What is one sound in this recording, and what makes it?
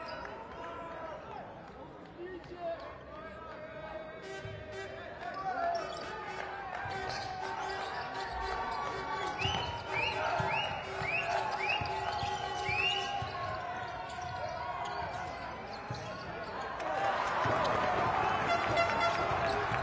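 A crowd in a large echoing arena murmurs and cheers.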